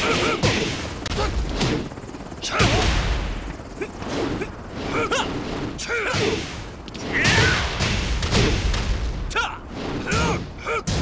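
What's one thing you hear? Punches and kicks land with sharp, heavy thuds, again and again.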